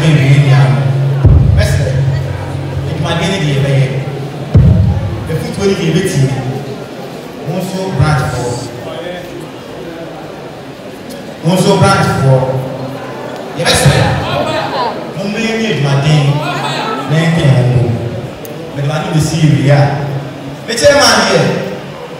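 A man speaks forcefully into a microphone over loudspeakers, echoing in a large hall.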